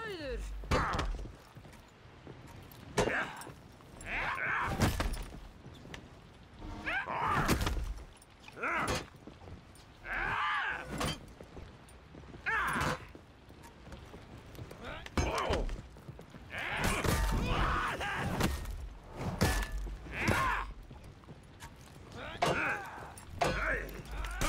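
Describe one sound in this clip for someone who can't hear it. Swords clash and clang sharply.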